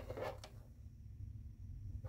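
A joystick clicks and rattles in a hand.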